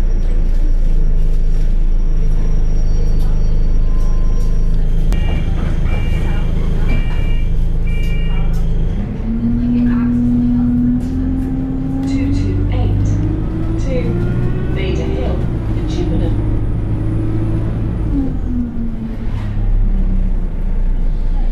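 A bus engine rumbles steadily, rising and falling in pitch as the bus pulls away.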